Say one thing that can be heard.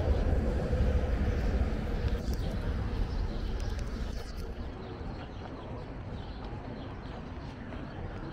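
A car drives slowly along a street nearby.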